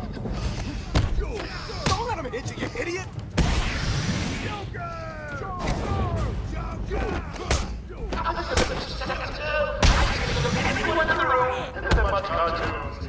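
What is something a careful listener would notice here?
Punches land with heavy thuds and smacks.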